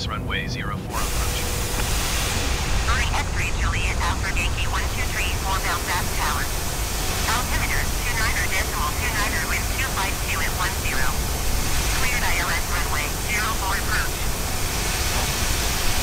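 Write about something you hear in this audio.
The engines of a twin-engine jet airliner drone steadily in cruise.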